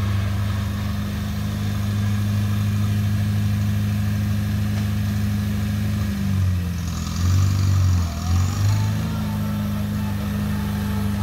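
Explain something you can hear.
A small tractor engine chugs steadily nearby, its pitch dipping and surging as it revs.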